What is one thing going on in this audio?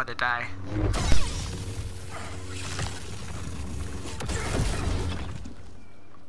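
A young man groans in pain through clenched teeth.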